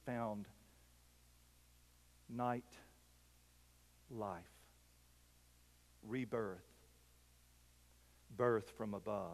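A middle-aged man speaks slowly and calmly through a microphone, with long pauses.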